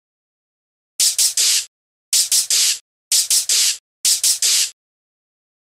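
A cartoon creature makes short bursts of hissing noise.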